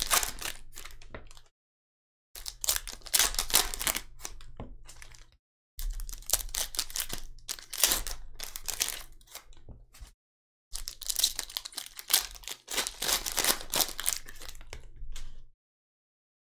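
Trading cards shuffle and flick against each other.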